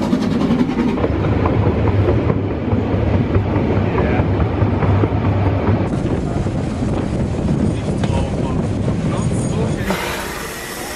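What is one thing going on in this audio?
Train wheels rumble and clatter on the rails.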